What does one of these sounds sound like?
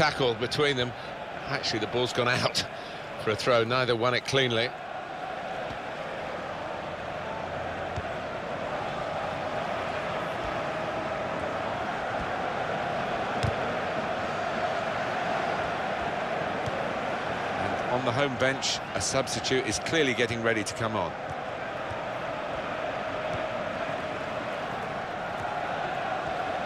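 A large stadium crowd murmurs and roars in a steady wash of noise.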